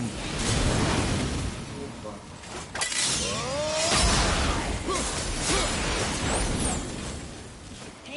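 Blades strike and clash in a fast fight.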